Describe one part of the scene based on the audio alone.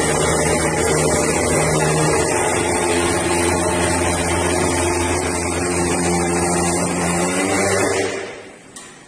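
A fogging machine roars loudly and then shuts off.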